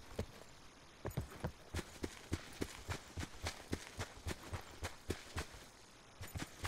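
Footsteps run through tall grass.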